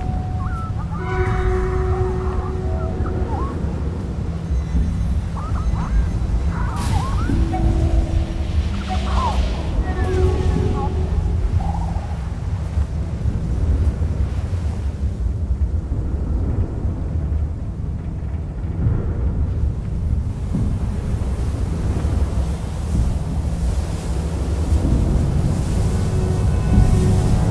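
Wind blows steadily over sand.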